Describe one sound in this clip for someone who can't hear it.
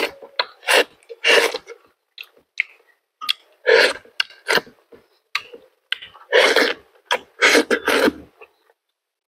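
A man bites and chews food loudly, close up, with wet smacking sounds.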